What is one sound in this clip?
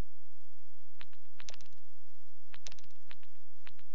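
Short interface clicks and blips sound in quick bursts.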